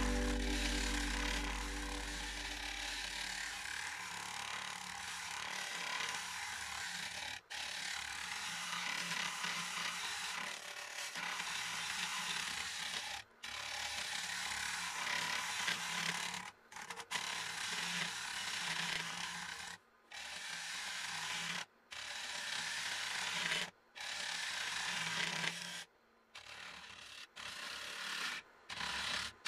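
A gouge scrapes and hisses against spinning wood, with short pauses.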